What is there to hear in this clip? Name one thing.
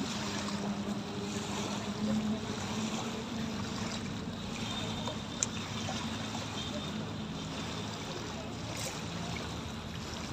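Small waves lap and wash against the shore.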